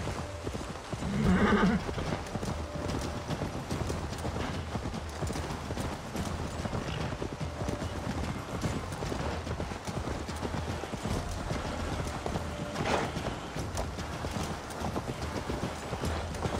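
A horse's hooves thud steadily over grass and earth.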